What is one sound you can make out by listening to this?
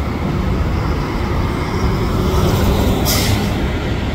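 A city bus engine rumbles as it drives past close by.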